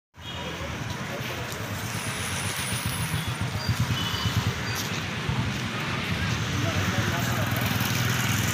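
Footsteps of a group walk along a street outdoors.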